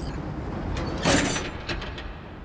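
A metal cabinet door swings open with a loud clang.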